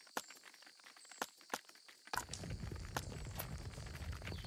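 Short sharp clicks tick several times.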